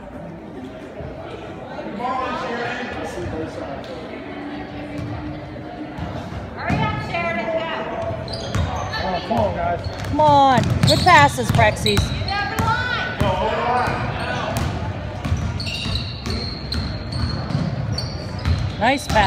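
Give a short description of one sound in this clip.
Girls shout and call out across an echoing gym.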